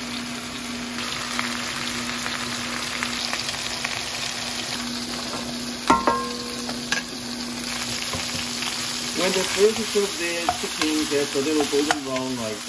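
Meat sizzles as it fries in a pan.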